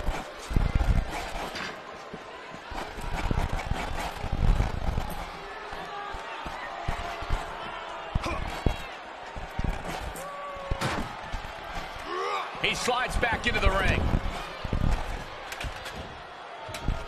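A crowd cheers loudly throughout.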